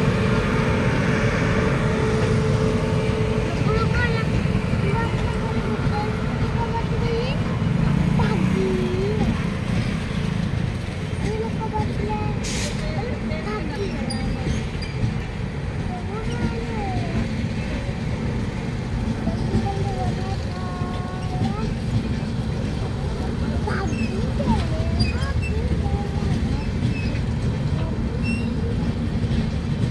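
A passenger train rumbles past on the tracks, its wheels clattering steadily.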